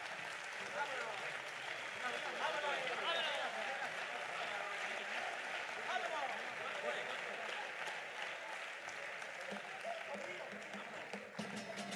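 A group of men sing together on a stage through microphones, in a large hall.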